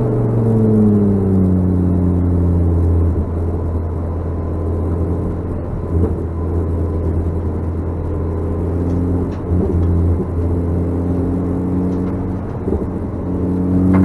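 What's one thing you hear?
An engine hums low and steady as the car slows.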